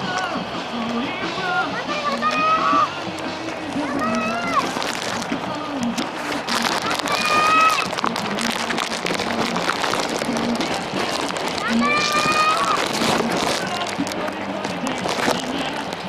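Many runners' footsteps patter on pavement.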